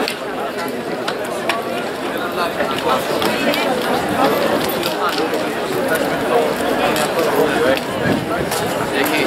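Running shoes patter on a track.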